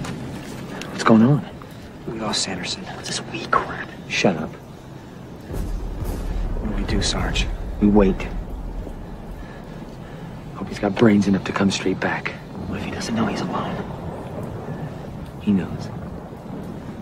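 Young men speak to each other in low, tense voices, close by.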